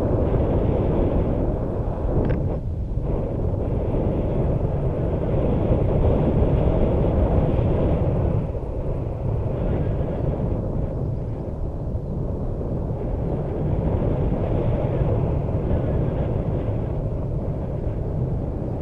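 Strong wind roars and buffets against a microphone.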